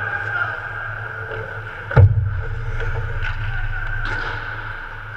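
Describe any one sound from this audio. Hockey sticks clack against the ice.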